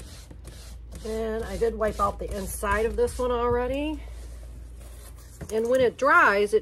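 A woman speaks casually nearby.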